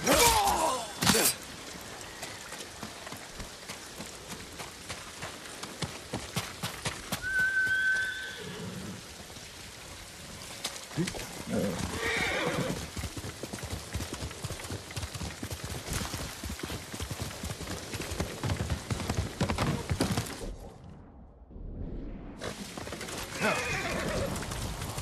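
Rain patters steadily all around.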